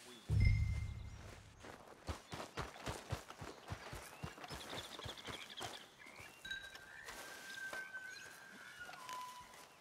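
Running footsteps thud through grass.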